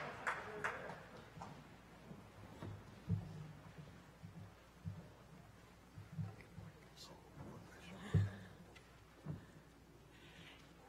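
An audience shuffles and settles into seats.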